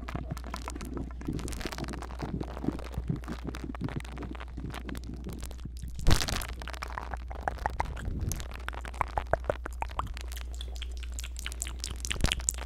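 A young man whispers softly close to the microphone.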